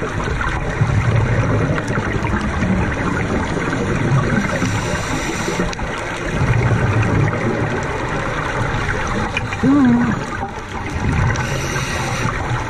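A scuba diver's regulator releases exhaled bubbles that gurgle and rumble underwater.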